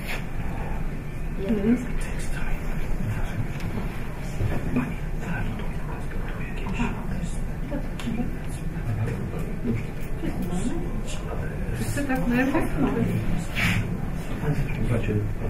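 Many people chatter at once in a low murmur.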